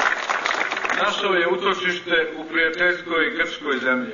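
A middle-aged man speaks formally into a microphone over loudspeakers outdoors.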